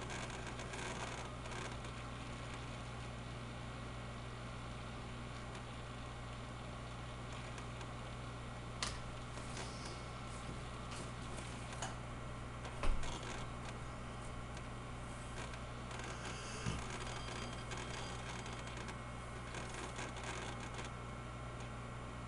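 A computer fan hums and whirs steadily close by.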